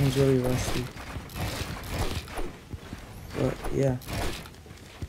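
Wooden building pieces snap into place with quick knocks.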